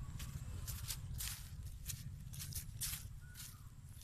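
A boy's footsteps crunch on dry plant stalks.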